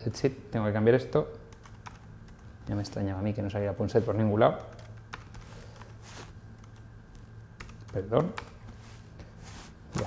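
Computer keys click as a man types.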